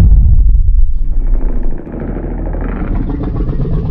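A giant creature roars loudly.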